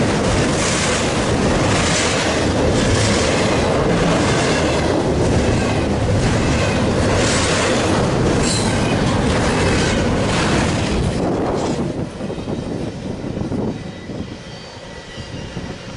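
A long freight train rumbles and clatters past close by, its wheels clanking over the rail joints.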